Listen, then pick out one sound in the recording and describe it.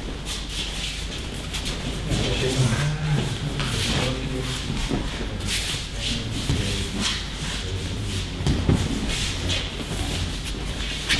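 Bodies thump onto a padded mat as people are thrown.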